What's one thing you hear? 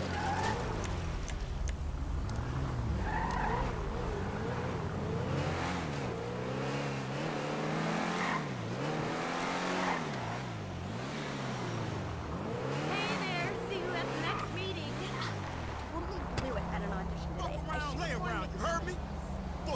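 A sports car engine revs up and down, rising and falling as it shifts gears.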